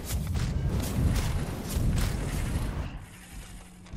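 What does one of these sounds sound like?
A loud explosion booms.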